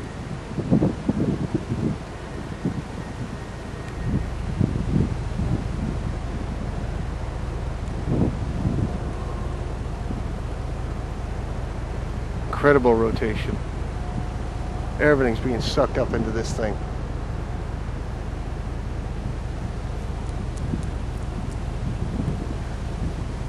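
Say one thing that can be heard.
Wind blows and rumbles across open ground.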